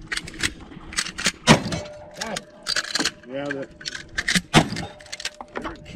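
A shotgun's pump action racks and clacks close by.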